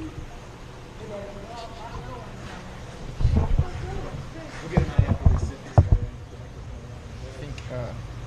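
A young man speaks casually close to the microphone.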